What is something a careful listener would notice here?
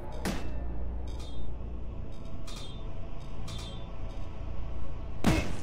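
Shots from a game weapon ring out in sharp bursts.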